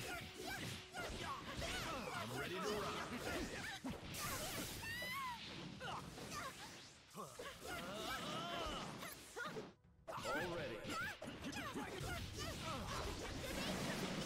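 Blows and energy blasts crash and whoosh in quick succession.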